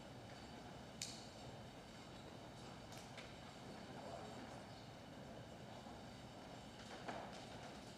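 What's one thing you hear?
Small clicks and knocks sound now and then.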